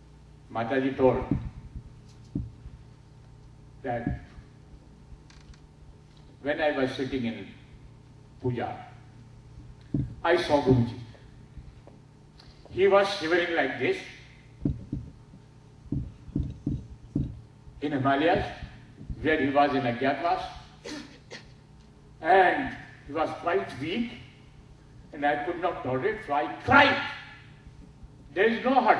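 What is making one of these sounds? An elderly man speaks calmly into a microphone in bursts with pauses, heard through a loudspeaker.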